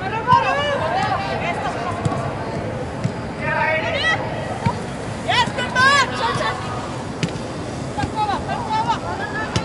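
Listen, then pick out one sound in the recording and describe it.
Young women shout calls to one another.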